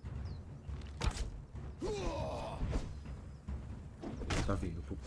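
A sword clashes against a shield.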